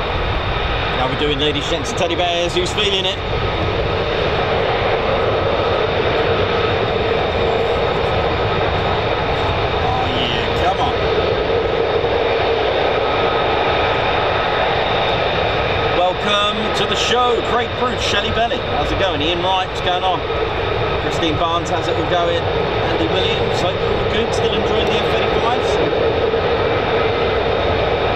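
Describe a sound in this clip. Jet engines idle with a steady loud roar and high whine.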